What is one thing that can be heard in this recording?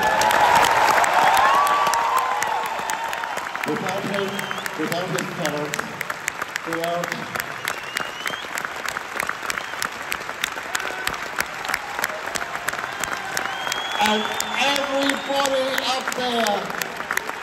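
An orchestra plays through loudspeakers.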